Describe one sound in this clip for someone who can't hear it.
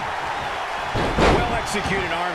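A body slams onto a wrestling ring mat.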